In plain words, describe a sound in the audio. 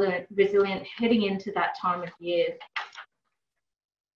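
A woman speaks calmly over an online call.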